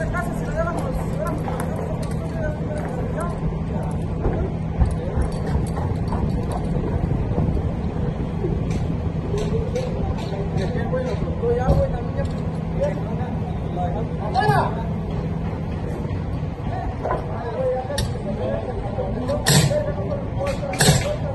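Men talk and call out to each other at a distance.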